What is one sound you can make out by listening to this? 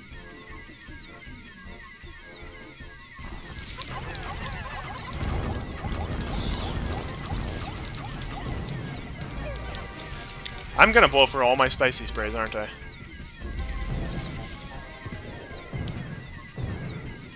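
Cheerful game music plays throughout.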